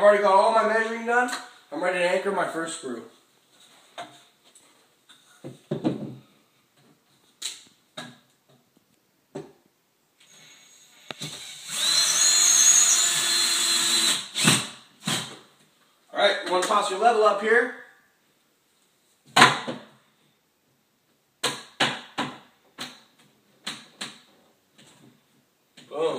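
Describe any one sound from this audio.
A wooden rack knocks and clatters against a wall.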